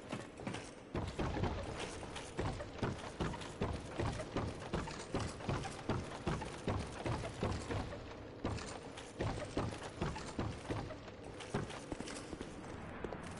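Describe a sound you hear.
Heavy armored footsteps clank steadily on stone.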